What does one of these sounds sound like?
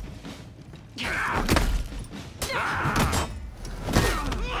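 A warrior grunts and shouts with effort.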